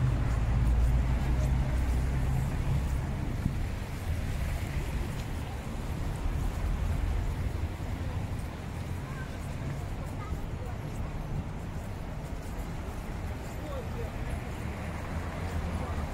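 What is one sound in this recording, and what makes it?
Wind blows against the microphone.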